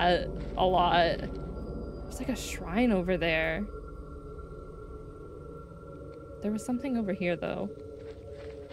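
A young woman speaks animatedly into a close microphone.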